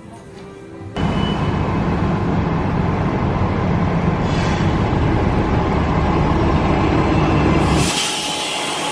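A bus engine rumbles loudly nearby.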